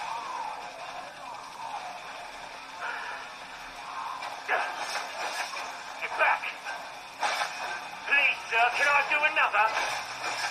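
Video game sounds play from a small laptop speaker.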